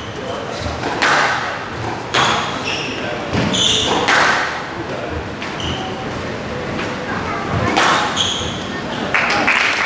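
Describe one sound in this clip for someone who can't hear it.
A squash ball smacks against the court walls.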